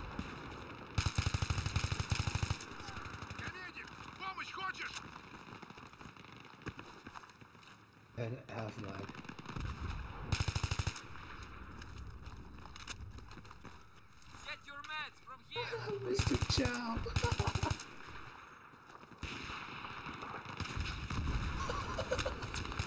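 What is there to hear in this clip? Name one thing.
Rapid bursts of automatic gunfire crack out.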